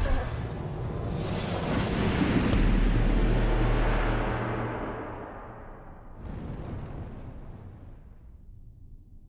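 A deep rumbling boom swells and slowly fades away.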